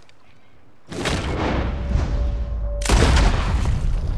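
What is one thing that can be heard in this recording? Gunshots ring out loudly.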